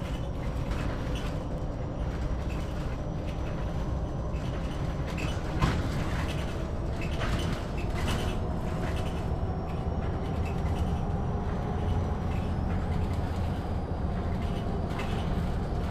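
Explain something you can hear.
Bus tyres rumble on the road.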